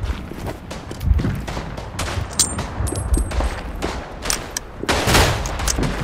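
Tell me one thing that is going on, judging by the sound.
A revolver's cylinder clicks open with sharp metallic snaps.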